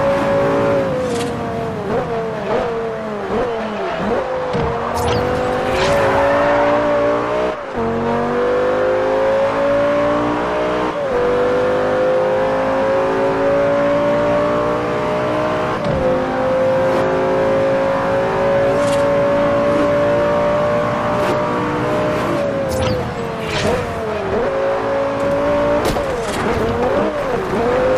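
A sports car engine roars loudly, climbing in pitch and dropping with each gear change.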